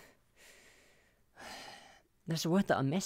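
A young woman breathes out heavily close to a microphone.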